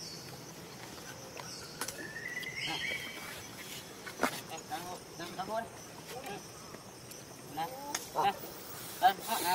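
A monkey chews food with soft crunching.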